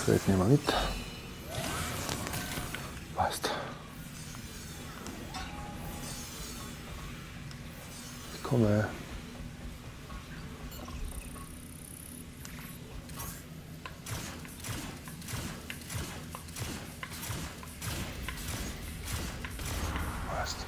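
Electronic game sounds whoosh, thump and hum.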